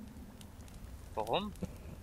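A torch flame crackles and roars close by.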